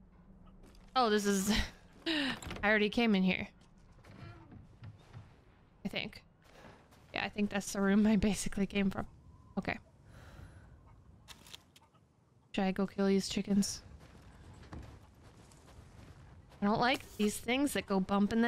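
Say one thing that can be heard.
A young woman talks animatedly into a close microphone.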